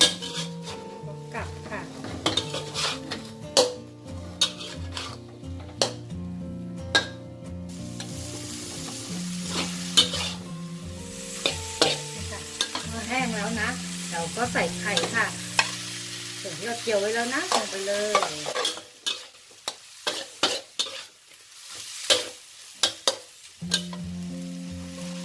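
Food sizzles in a hot wok.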